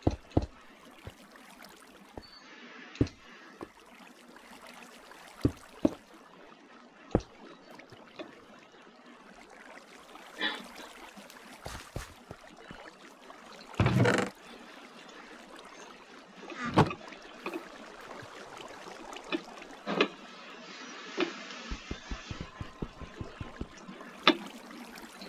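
Blocks thud as they are placed in a game.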